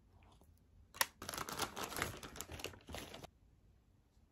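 Paper packaging rustles and crinkles as it is handled.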